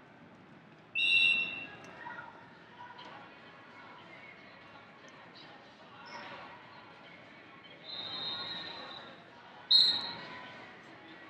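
A referee blows a shrill whistle.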